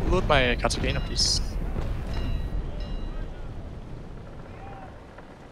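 Cannon fire booms and rumbles, then slowly fades.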